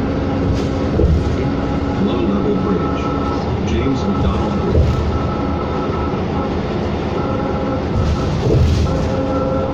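The bus body rattles and clunks over bumps.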